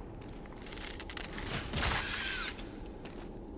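A sharp magical blast bursts out close by.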